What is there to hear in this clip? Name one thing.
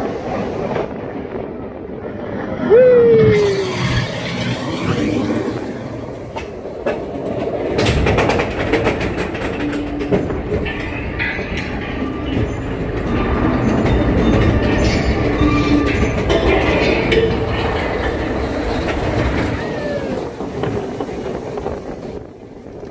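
A roller coaster train rumbles and clatters along its track.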